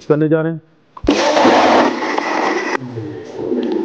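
A blender whirs loudly.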